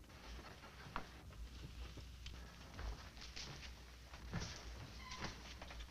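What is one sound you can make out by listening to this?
Boots thud slowly across a wooden floor.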